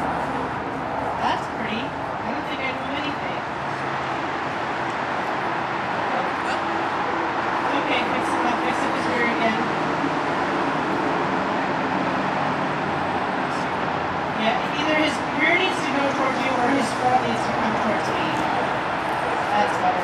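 A young woman talks softly to a dog nearby.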